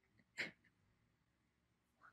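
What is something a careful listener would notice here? A young woman laughs softly close to a microphone.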